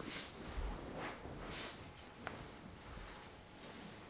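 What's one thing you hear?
A young woman speaks in a flat, quiet voice nearby.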